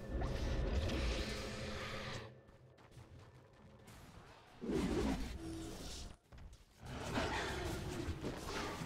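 Video game spell effects and weapon hits clash in a battle.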